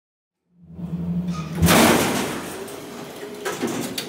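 Elevator doors slide open.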